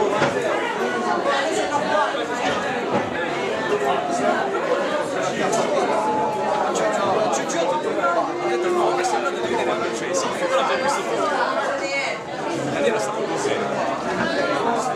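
A crowd of young men and women chatter loudly all around, close by.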